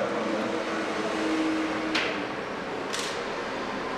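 A man speaks calmly into a microphone nearby.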